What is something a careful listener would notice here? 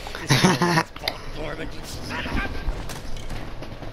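A middle-aged man speaks in a low, bitter voice.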